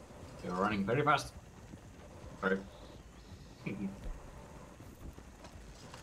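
Wagon wheels rumble and creak over a dirt track.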